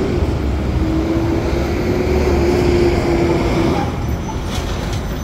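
A city bus drives past close by with a low engine rumble and a steady whine.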